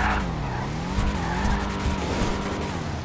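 Car hydraulics thump as a car bounces.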